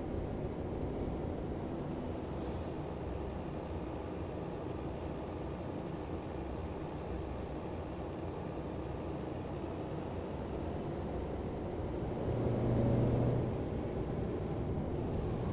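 A truck engine rumbles steadily as the truck drives along a winding road.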